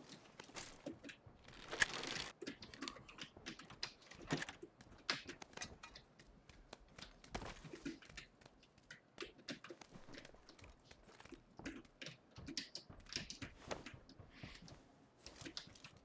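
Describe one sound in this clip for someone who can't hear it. Footsteps patter quickly on a hard floor in an echoing room.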